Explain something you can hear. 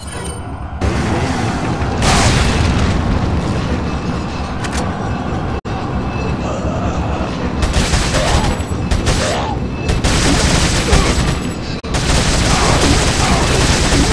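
A mine cart rumbles and clatters along rails.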